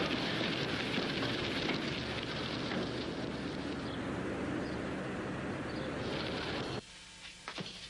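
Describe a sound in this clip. A horse-drawn wagon rolls along a dirt street.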